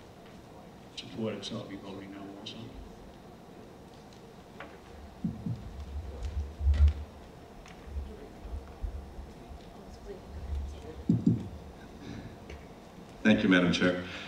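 An older man speaks calmly into a microphone in a large room.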